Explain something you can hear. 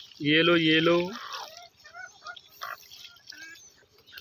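Water pours and splashes into a shallow dish.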